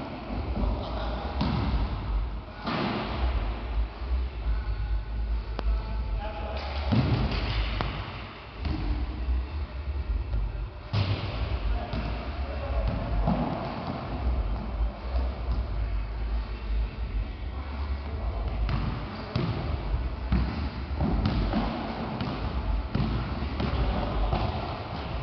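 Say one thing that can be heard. A ball bounces on a wooden floor in a large echoing hall.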